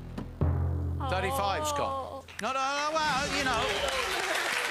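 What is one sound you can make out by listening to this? A studio audience cheers and screams with excitement.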